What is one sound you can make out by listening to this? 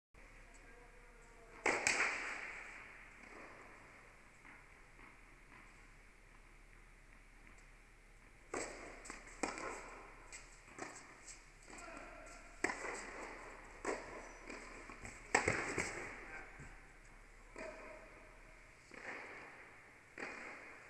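Tennis shoes squeak on the court.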